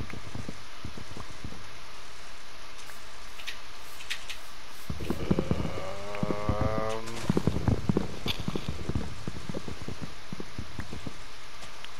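Leaves rustle and crunch as they break.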